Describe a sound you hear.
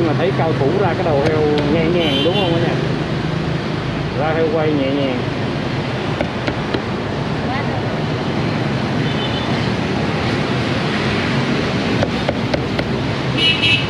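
A cleaver chops on a wooden block.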